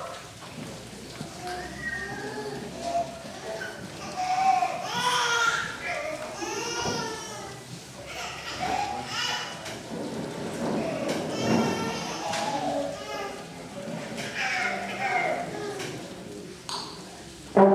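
A clarinet plays a wavering melody.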